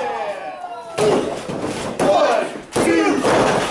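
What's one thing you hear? Wrestlers' bodies thud onto a wrestling ring mat.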